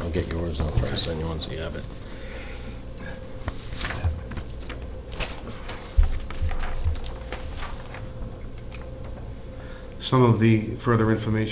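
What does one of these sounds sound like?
Paper rustles as a man handles sheets.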